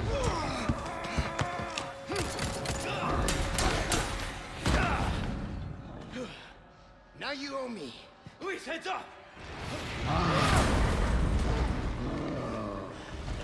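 A monster roars and crashes heavily.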